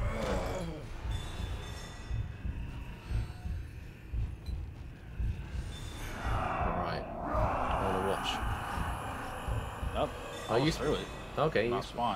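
A magical shimmering hum swells as a spirit rises.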